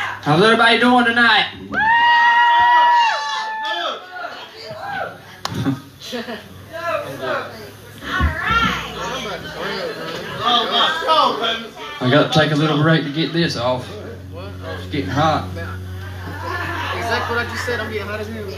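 Men talk loudly close by in an echoing room.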